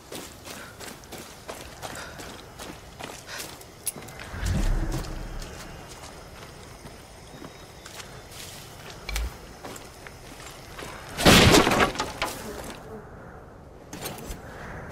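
Footsteps tread steadily over dirt and grass.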